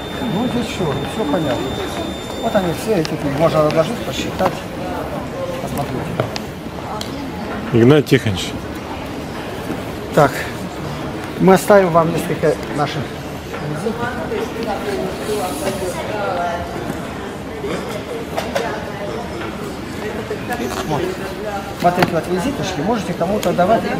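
Several adults talk nearby.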